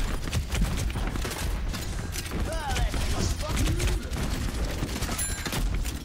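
Rapid gunshots crack and pop.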